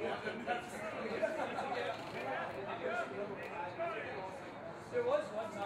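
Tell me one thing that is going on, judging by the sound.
Young men shout and call out nearby outdoors.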